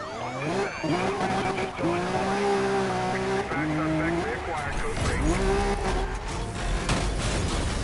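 A sports car engine roars loudly, revving up through the gears.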